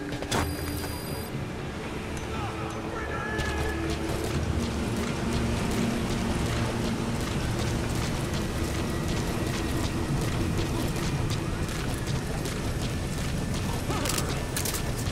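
Heavy footsteps clank on a metal deck at a steady walking pace.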